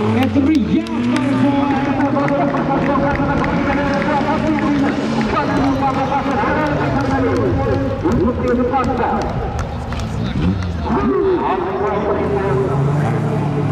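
Racing car engines roar and rev loudly.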